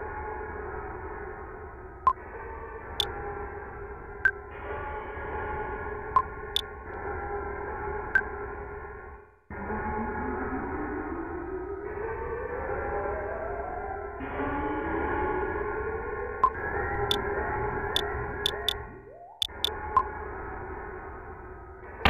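Chiptune video game music plays steadily.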